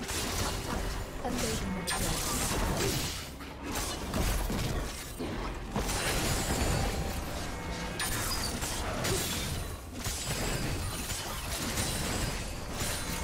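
Fantasy battle sound effects whoosh, clash and crackle throughout.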